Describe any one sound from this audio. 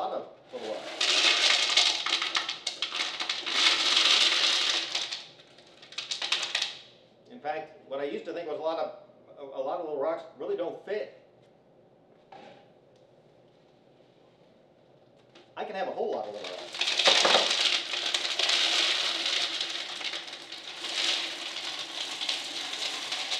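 Glass marbles clatter and rattle as they pour into a glass jar.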